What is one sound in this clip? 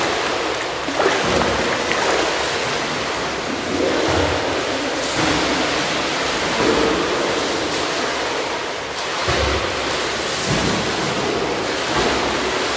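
A swimmer splashes with strokes nearby.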